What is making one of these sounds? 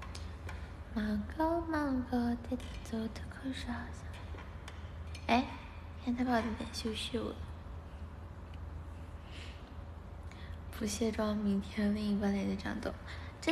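A young woman speaks playfully close to a phone microphone.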